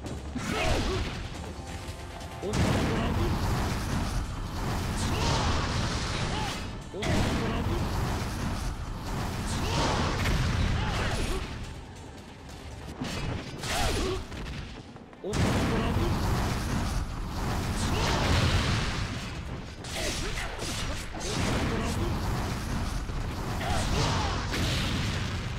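Blades clash and slash in quick strikes.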